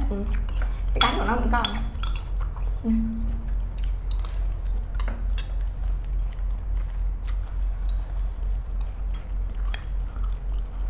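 Chopsticks and spoons click against bowls.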